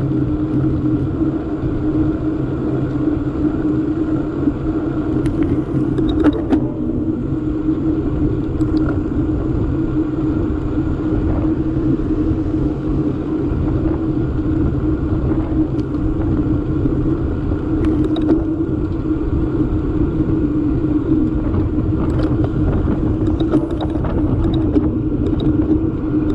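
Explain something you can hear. Wind roars steadily against the microphone outdoors.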